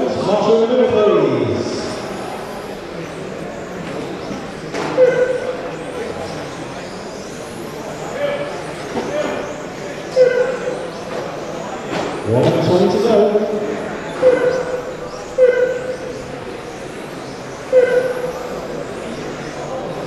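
Small electric racing cars whine as they race around an indoor track, echoing in a large hall.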